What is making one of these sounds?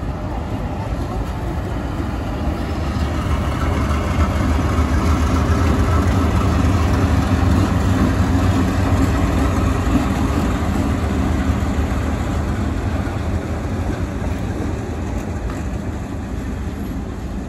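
A diesel locomotive rumbles past, its engine droning loudly and then fading.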